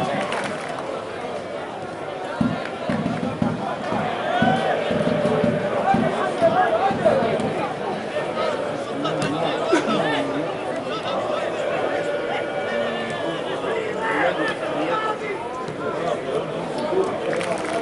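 Players call and shout to each other across an open outdoor pitch.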